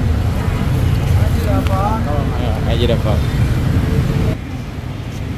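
Traffic rumbles and motorbikes pass on a busy street.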